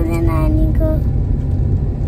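A young boy speaks close by.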